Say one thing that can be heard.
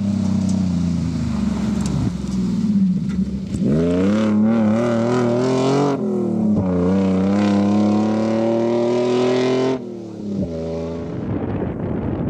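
A rally car engine roars and revs as it races past on gravel, then fades into the distance.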